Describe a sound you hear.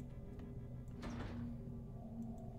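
A locked door rattles as it is tried.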